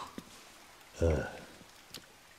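A second man answers briefly.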